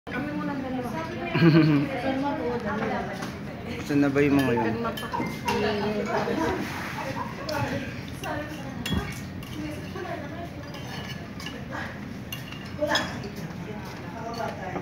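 Spoons clink against bowls.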